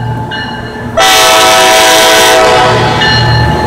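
A train horn blares loudly close by.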